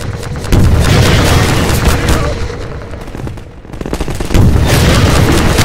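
Deep booms rumble and roll.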